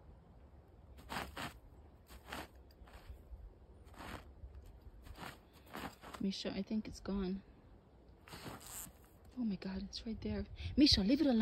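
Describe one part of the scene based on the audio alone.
A dog's paws scrape and scratch at dry dirt and twigs.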